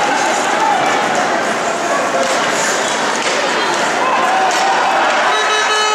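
A crowd cheers and whistles loudly in a large echoing arena.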